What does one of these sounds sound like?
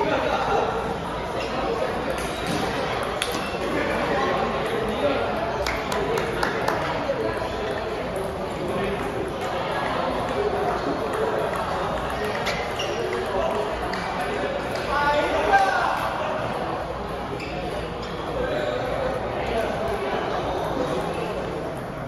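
Adults murmur and chatter in a large echoing hall.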